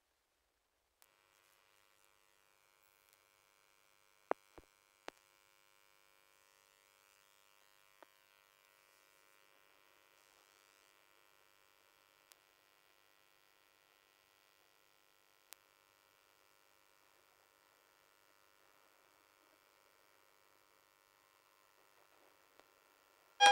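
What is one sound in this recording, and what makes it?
A tanpura drones steadily and faintly.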